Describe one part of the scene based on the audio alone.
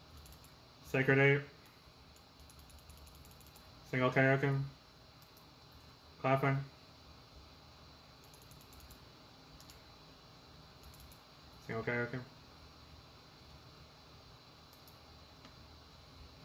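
Keyboard keys click and clatter under quick fingers.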